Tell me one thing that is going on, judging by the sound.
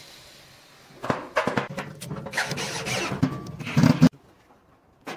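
A cordless drill whirs in short bursts into metal.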